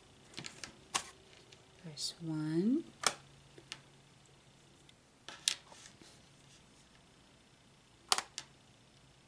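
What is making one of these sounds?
Small plastic pieces click as they are set down on a table.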